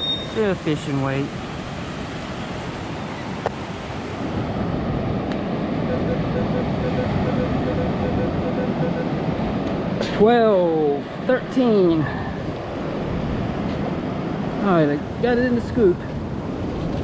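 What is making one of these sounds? Small waves wash onto a sandy beach.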